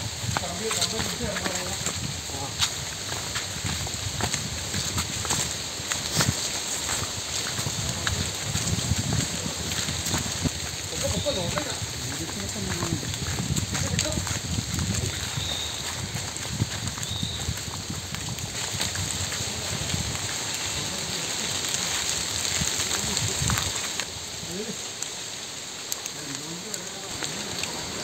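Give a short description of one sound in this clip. Insects buzz steadily outdoors.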